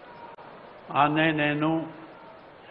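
An elderly man speaks loudly into a microphone over a loudspeaker.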